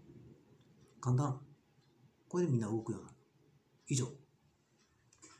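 A man speaks calmly in short bursts close to the microphone.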